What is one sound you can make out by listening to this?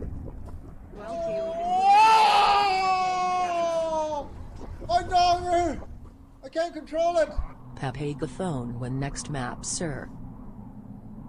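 A young man talks excitedly into a microphone, now and then shouting.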